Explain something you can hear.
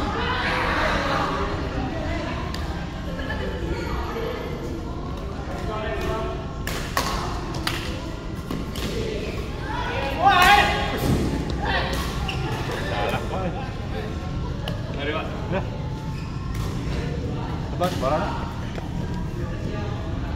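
Men talk casually nearby in a large echoing hall.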